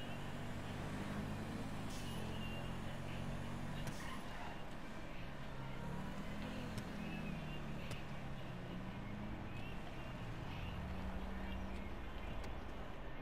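A car engine hums as the car cruises, then slows to a stop.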